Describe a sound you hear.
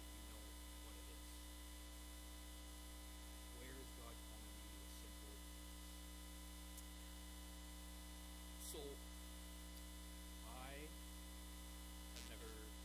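A man speaks calmly and haltingly through a microphone.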